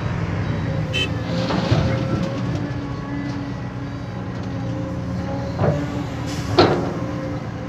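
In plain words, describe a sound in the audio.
Dirt thuds into a truck bed.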